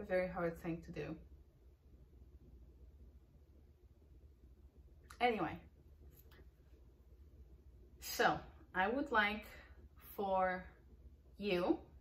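A young woman speaks close to a microphone with animation, pausing between phrases.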